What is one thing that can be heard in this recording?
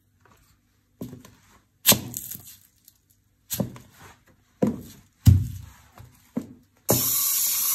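High heels crush a small plastic toy with sharp cracks.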